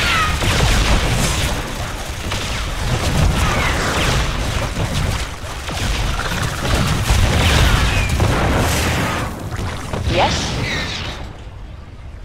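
Rapid gunfire and blasts rattle in a busy battle.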